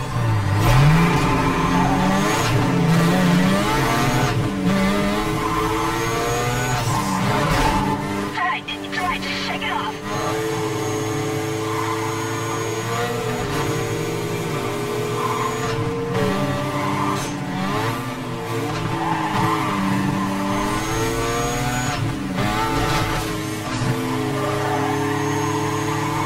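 A racing car engine roars and revs at high speed.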